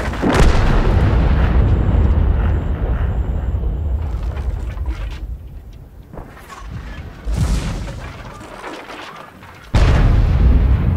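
A heavy tank engine rumbles and roars loudly.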